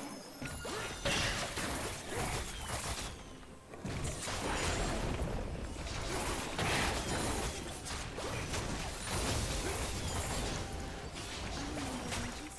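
Game spells and weapon hits crackle and clash in quick bursts.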